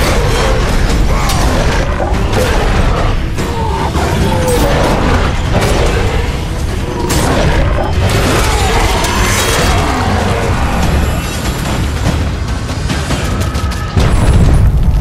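Chained blades whoosh and slash in a rapid fight.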